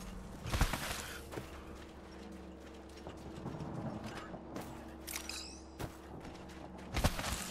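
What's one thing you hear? Footsteps crunch quickly over snow and rock.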